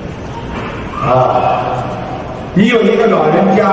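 An older man speaks calmly into a microphone through a loudspeaker.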